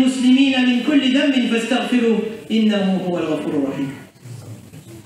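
A man speaks with animation into a microphone in an echoing room.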